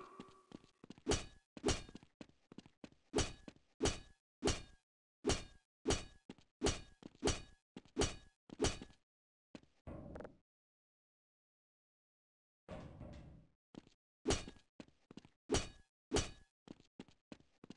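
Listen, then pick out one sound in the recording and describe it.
Footsteps tap steadily on the ground.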